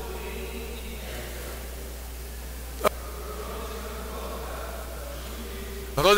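A man chants at a distance in a large, echoing hall.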